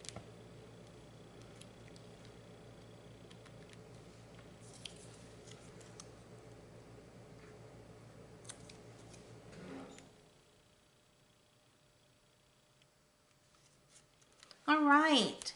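Stiff paper rustles and taps softly as hands handle a card.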